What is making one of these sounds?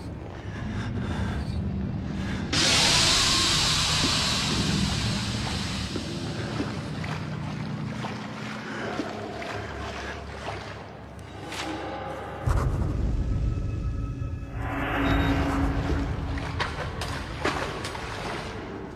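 Water trickles along a tunnel channel.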